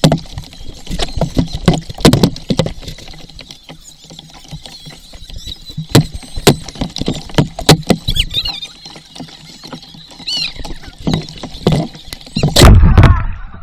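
Water knocks against the boat close by.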